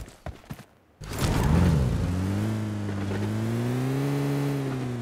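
A car engine starts and revs up in a video game.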